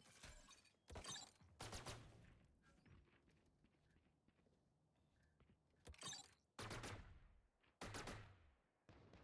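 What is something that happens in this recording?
Gunshots crack sharply in a video game.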